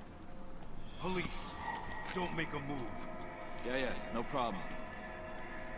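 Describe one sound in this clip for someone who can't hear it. A man calls out nervously nearby.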